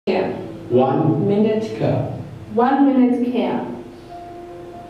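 A woman speaks to a group.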